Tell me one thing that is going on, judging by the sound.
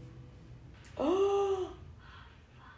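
A young woman cries out loudly in surprise close by.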